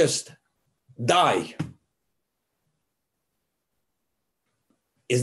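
An elderly man speaks calmly into a microphone over an online call.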